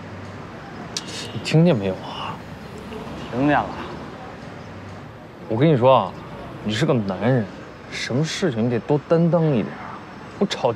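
A young man speaks firmly in a lecturing tone.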